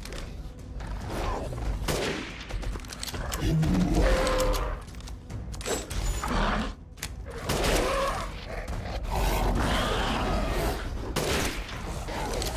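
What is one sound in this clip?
A beast snarls and growls close by.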